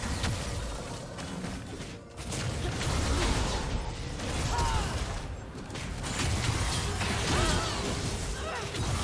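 Game spell effects crackle and whoosh during a fight.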